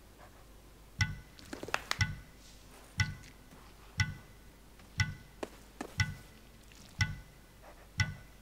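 Short menu clicks tick at a steady pace.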